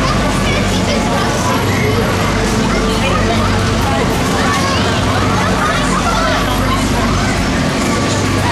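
Riders shriek and squeal on a spinning ride.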